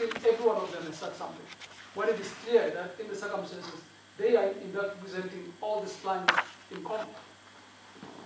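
A middle-aged man speaks calmly and closely, heard through a microphone.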